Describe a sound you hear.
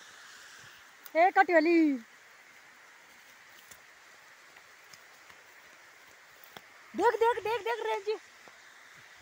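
A young woman calls out loudly, close by, in short bursts.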